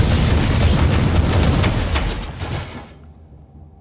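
Weapons crash and blast in a fierce fight.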